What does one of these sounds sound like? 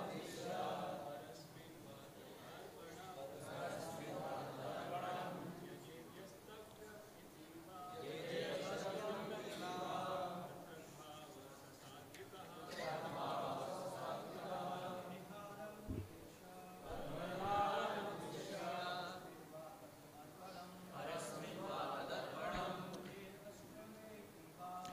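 An elderly man talks calmly and steadily into a microphone, with short pauses.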